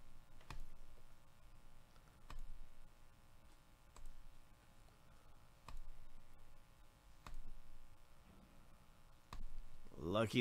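A computer mouse clicks several times at a steady pace.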